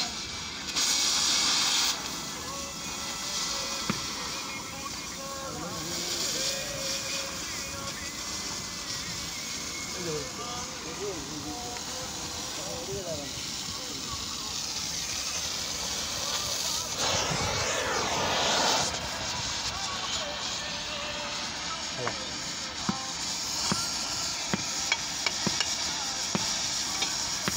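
A cutting torch hisses and roars steadily as it burns through metal.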